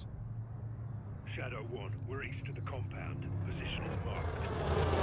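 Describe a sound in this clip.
A man speaks calmly over a radio.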